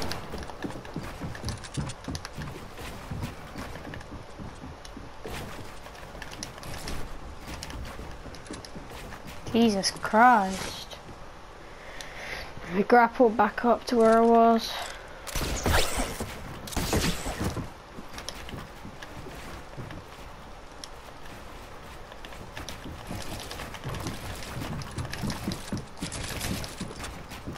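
Wooden walls and ramps clack into place in quick succession in a video game.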